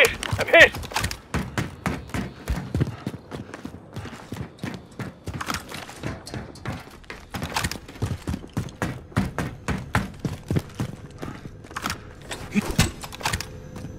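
Footsteps run.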